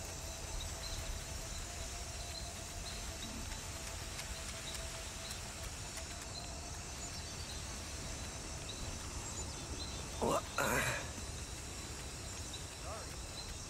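Footsteps run quickly over a stone path.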